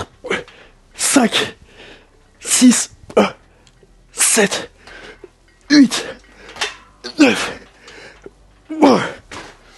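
A man grunts and exhales sharply with each strained pull.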